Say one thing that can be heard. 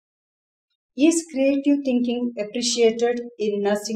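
An older woman speaks calmly and close up.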